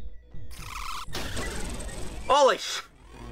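Loud game effects rumble and crash.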